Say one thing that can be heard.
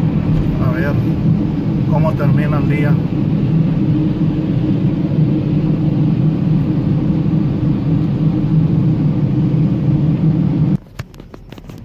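A car's engine and tyres on a wet road rumble steadily from inside the car.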